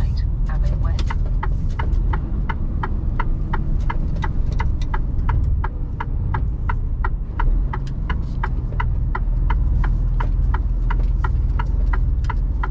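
A turn signal ticks quickly and evenly.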